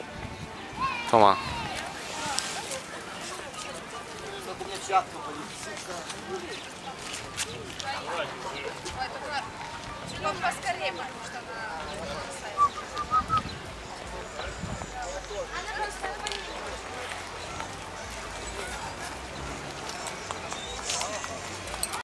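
A lively crowd of men and women chatters and calls out all around, outdoors.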